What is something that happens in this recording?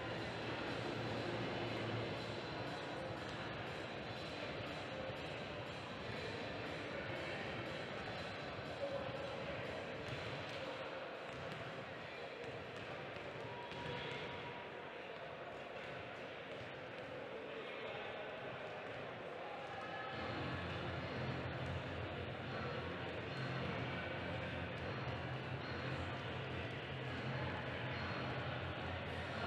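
A crowd murmurs faintly in a large echoing hall.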